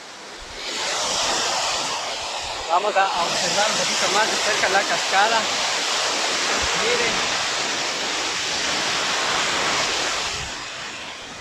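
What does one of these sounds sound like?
A waterfall roars and splashes nearby.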